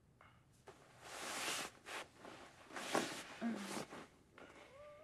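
A man breathes heavily and sighs close by.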